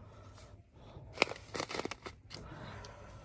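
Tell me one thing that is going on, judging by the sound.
A plastic bag crinkles as a hand touches it.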